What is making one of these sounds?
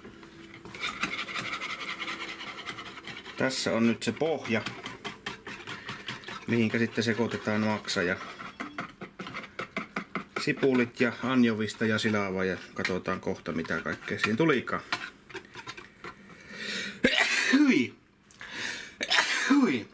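A wire whisk scrapes and clicks rapidly against a bowl.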